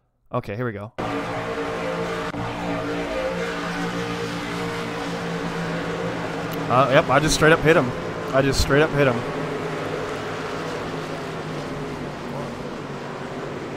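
Racing engines drone steadily at high speed.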